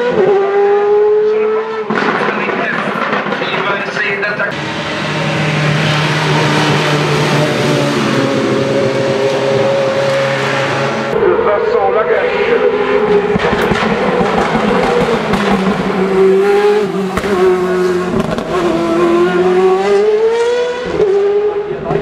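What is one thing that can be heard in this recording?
A racing car engine roars loudly and revs up and down as the car speeds past.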